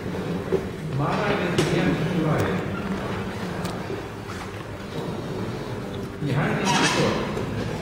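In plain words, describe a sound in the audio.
A man speaks loudly nearby in a room with some echo.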